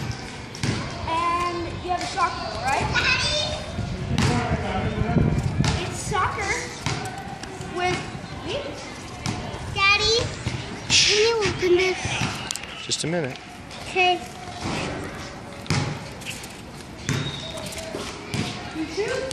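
Young children talk and call out nearby.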